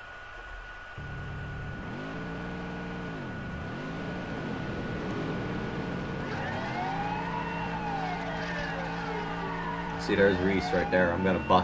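A car engine idles and then revs up.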